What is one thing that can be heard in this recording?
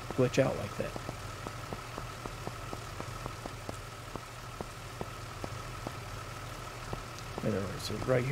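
Boots thud on pavement with slow footsteps.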